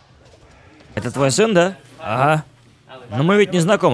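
A crowd of men talks loudly nearby.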